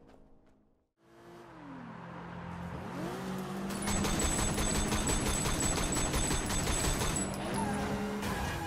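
A car engine roars as a car speeds along a street.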